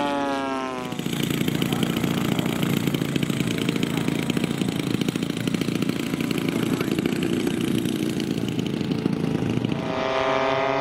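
A model plane's engine buzzes as it taxis along the ground.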